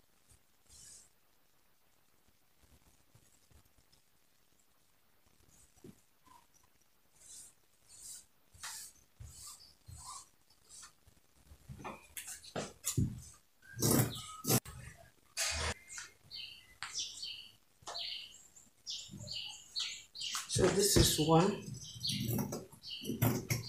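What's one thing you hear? Cloth rustles and swishes as hands smooth and fold it.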